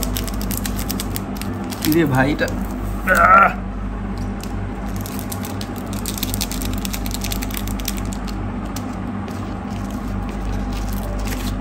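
Paper crinkles as a pizza box is handled.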